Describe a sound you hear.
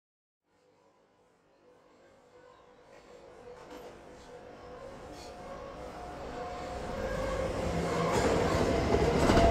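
A subway train pulls into a station, its rumble growing louder.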